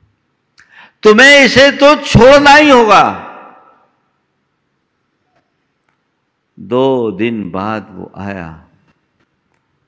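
An elderly man chants in a long, melodic voice through a microphone, with pauses between phrases.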